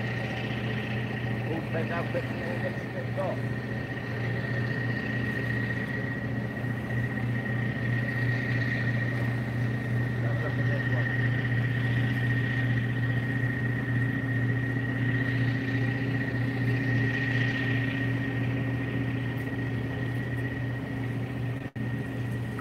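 Water laps gently against a harbour wall.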